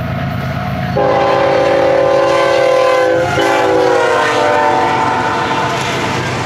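A freight train's horn blares loudly and drops in pitch as it passes.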